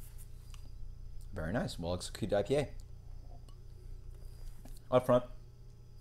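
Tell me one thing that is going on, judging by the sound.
A young man sips and swallows a drink.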